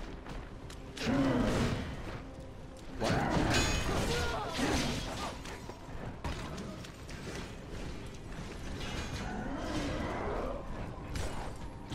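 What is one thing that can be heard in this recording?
A huge monster roars and growls.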